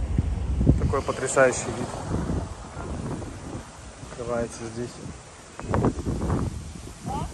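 A young adult talks casually while walking nearby.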